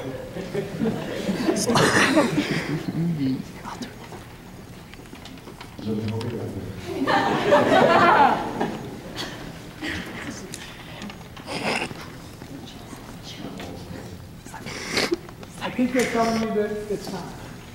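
A young man speaks through a microphone in an echoing hall.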